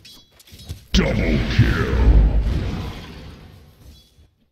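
A game spell bursts with a loud, rushing blast.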